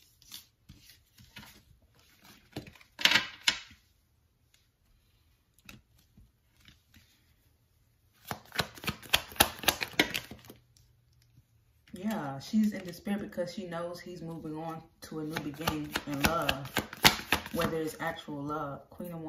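A card is set down on a glass tabletop with a soft tap.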